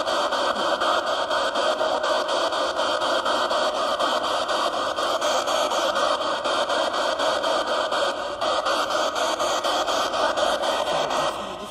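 A radio scanning box sweeps through static in rapid choppy bursts.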